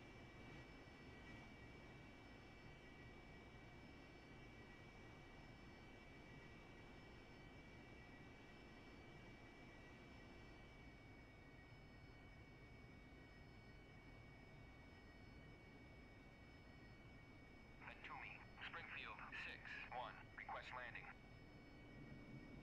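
A jet engine roars steadily, heard from inside the cockpit.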